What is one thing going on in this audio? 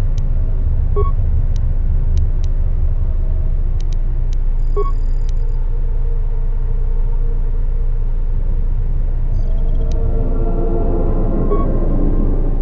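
A short electronic chime sounds as a menu option is picked.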